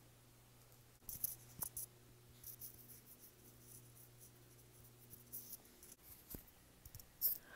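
Orange peel tears and crackles up close.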